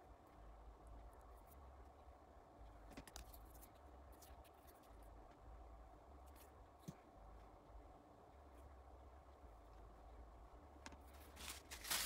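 Small metal parts click and tap softly against each other.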